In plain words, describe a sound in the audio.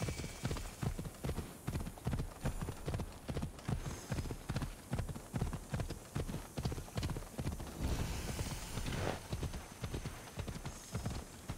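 Horse hooves pound steadily on a dirt path.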